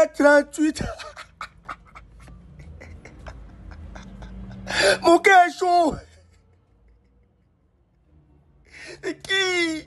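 A man laughs loudly and wildly close to a microphone.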